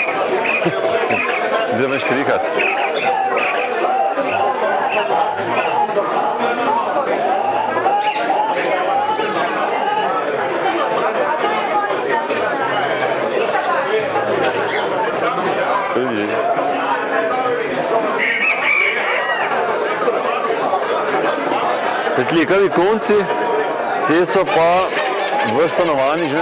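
A crowd of men and women chatter throughout a large echoing hall.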